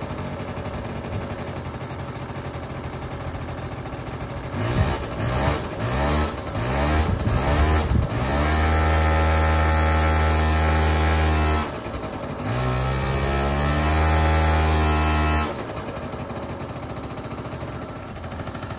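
A small engine idles with a low hum.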